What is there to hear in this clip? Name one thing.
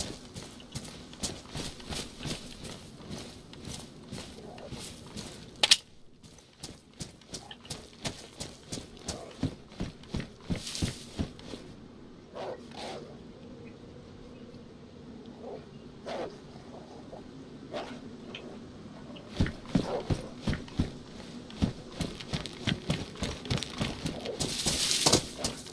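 Footsteps thud on grass and dirt.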